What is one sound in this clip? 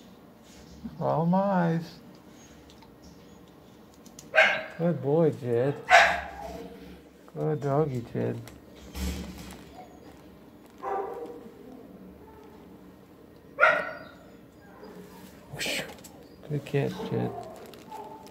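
A dog whines and yowls in short, wavering bursts close by.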